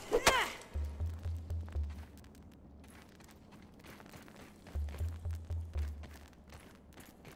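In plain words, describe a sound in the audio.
Heavy footsteps thud in a quick, even rhythm.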